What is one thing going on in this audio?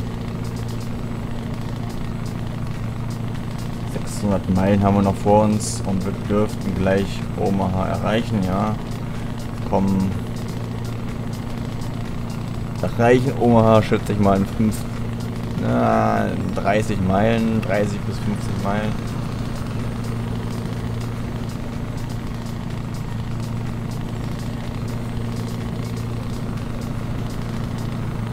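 A truck engine hums steadily at a low pitch.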